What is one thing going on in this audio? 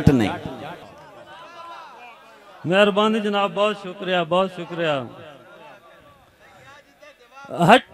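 A man recites in a loud, singing voice through a microphone and loudspeakers, with an echo.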